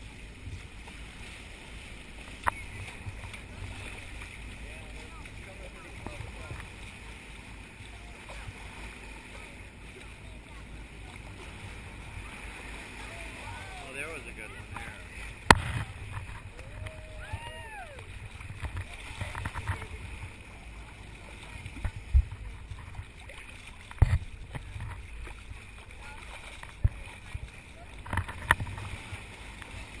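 Water rushes and splashes steadily against a moving boat's hull.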